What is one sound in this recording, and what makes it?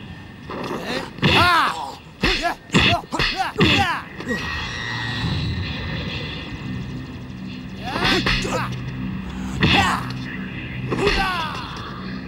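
Punches and kicks land with sharp whooshes and thuds.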